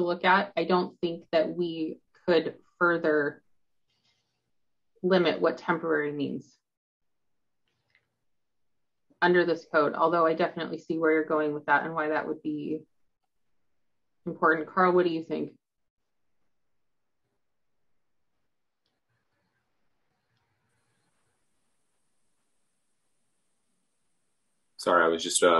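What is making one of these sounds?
A woman speaks calmly and thoughtfully close to a microphone, with long pauses.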